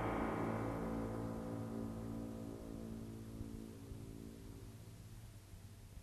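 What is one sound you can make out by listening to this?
A pitched tone from an old radio slowly fades away.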